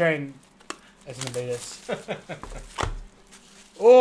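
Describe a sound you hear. A cardboard box rustles as it is handled.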